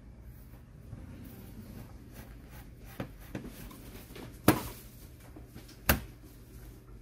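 Metal panels click and clatter as they are handled.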